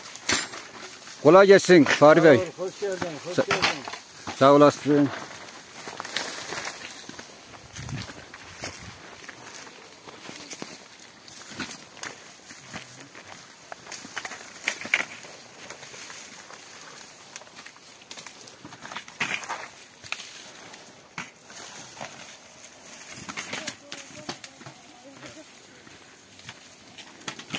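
Leaves rustle and branches shake as apples are picked from a tree.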